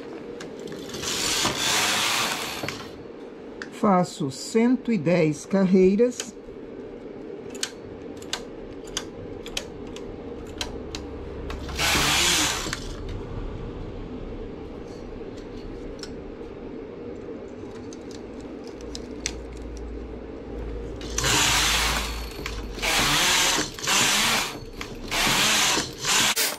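A knitting machine carriage slides across the needle bed with a rushing, rattling swish.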